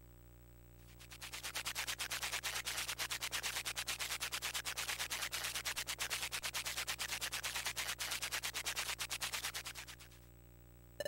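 A rapid, crunchy munching noise repeats quickly and steadily.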